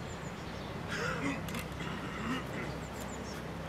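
A man calls out short commands to a dog.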